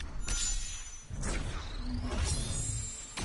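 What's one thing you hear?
A deep magical whoosh swells and rumbles.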